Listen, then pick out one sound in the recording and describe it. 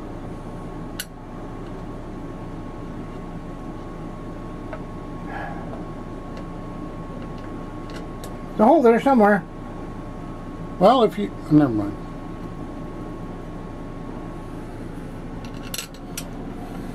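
Fingers knock lightly on a metal machine.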